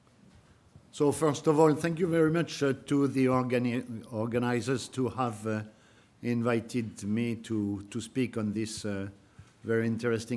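An elderly man speaks calmly into a microphone.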